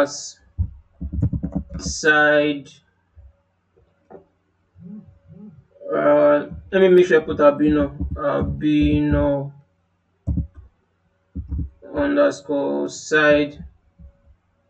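A young man talks calmly and close to a microphone, in short bursts with pauses.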